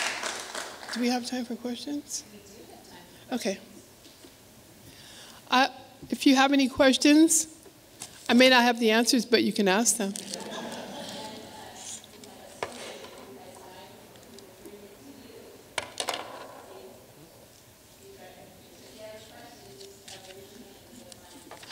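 A man speaks into a microphone in a large echoing hall.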